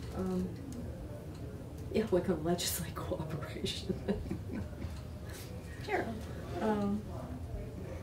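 An elderly woman speaks calmly in a quiet room, heard through a microphone.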